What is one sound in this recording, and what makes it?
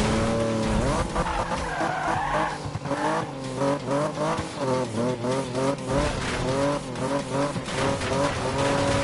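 Tyres screech as a car drifts through corners.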